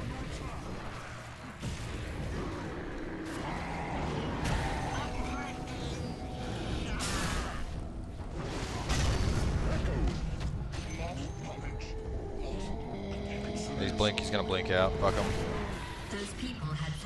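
Spell blasts crackle and boom in a busy fight.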